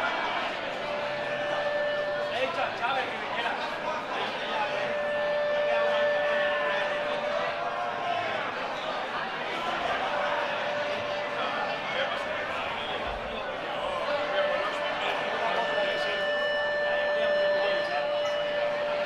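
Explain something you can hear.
Electric guitars play sustained, ringing notes.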